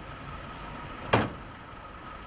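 A car hood slams shut with a sharp bang.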